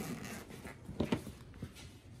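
A plastic case's lid clicks and pops open.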